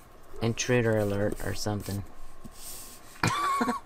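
A sheet of card slides across a tabletop.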